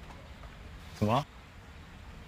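A young man makes a short rising exclamation close by.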